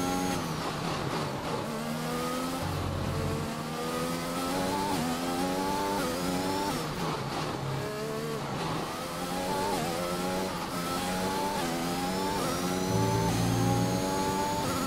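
A racing car engine screams, rising in pitch through each gear and dropping with each gear change.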